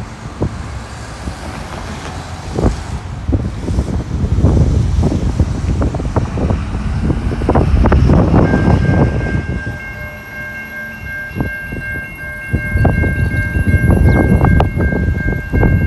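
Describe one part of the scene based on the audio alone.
Cars drive past close by.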